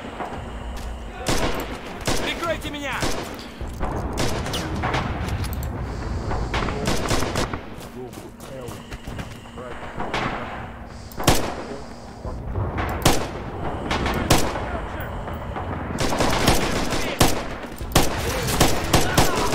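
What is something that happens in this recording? Gunshots crack and echo repeatedly, near and far.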